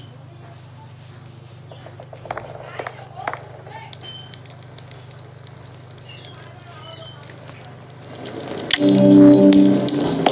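A fire crackles in a fireplace.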